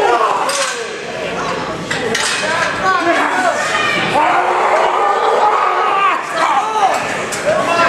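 Bodies thud against a metal barrier.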